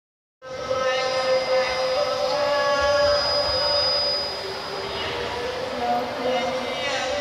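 Music plays loudly over loudspeakers in a large echoing hall.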